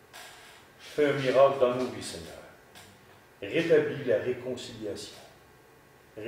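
A man speaks calmly and slowly, reading out close to a microphone.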